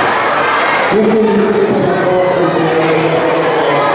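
An older man speaks through a microphone in an echoing hall.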